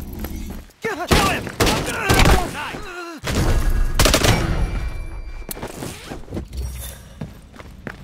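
A rifle fires rapid bursts of loud shots close by.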